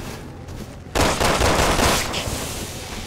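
A handgun fires a burst of shots.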